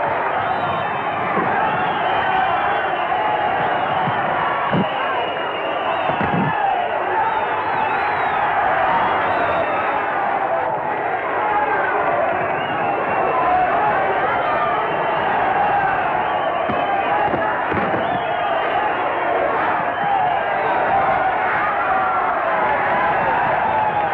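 A crowd murmurs and cheers.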